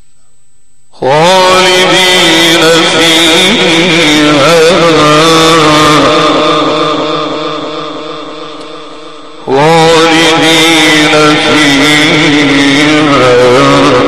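A man chants loudly through a microphone with a long, wavering melody.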